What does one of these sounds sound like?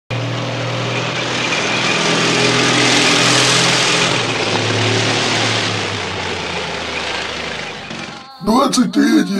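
A tank engine rumbles loudly and steadily.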